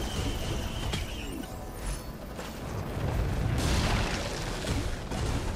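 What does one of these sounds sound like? Video game effects whoosh and clatter throughout.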